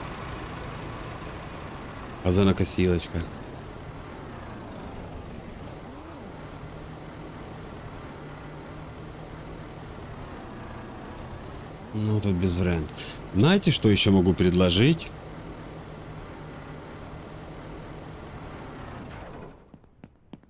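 A car engine idles with a steady low hum.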